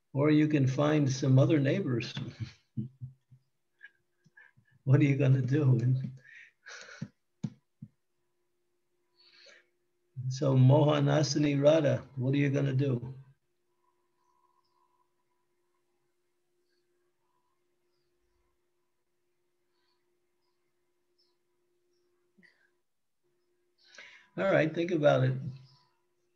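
An elderly man speaks calmly in short bursts over an online call.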